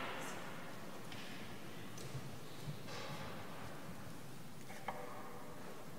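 Soft footsteps echo in a large, reverberant hall.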